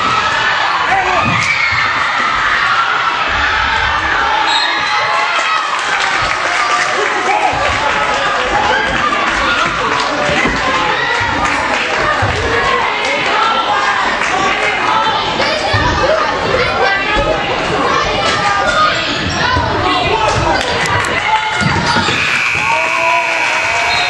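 A crowd of boys cheers and shouts loudly in an echoing gym.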